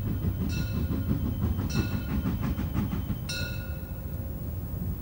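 A steam locomotive whistle blows in short shrill blasts.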